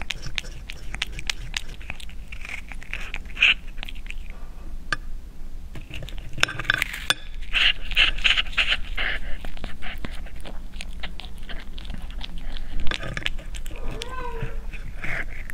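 A cat chews and smacks noisily on soft food up close.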